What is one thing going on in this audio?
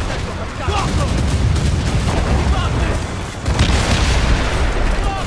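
Cannons boom and rumble heavily in a sea battle.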